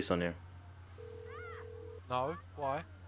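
A phone ringback tone sounds once.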